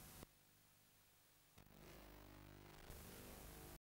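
Tape static hisses and buzzes.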